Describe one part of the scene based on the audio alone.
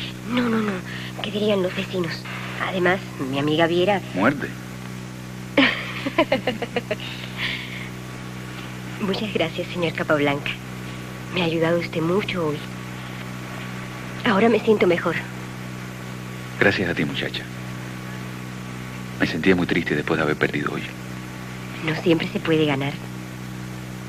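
A woman answers softly, close by.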